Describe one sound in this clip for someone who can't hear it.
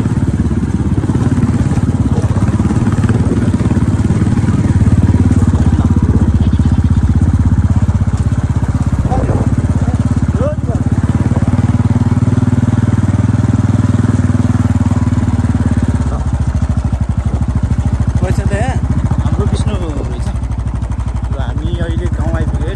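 A motorbike engine hums steadily while riding over a dirt road.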